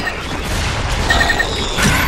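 Bullets strike stone and debris scatters.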